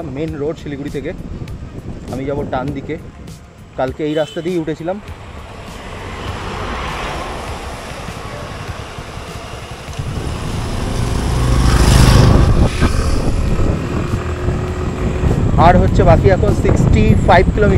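A scooter engine hums steadily as it rides along.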